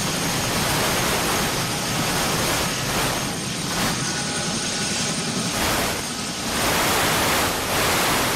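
Helicopter rotor blades whir and thump rapidly.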